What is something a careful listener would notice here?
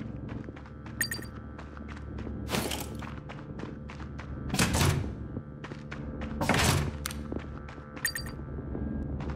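A short bright chime rings as an item is picked up.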